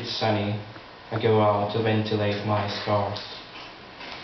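A man speaks loudly and expressively into a microphone through loudspeakers in a room that echoes.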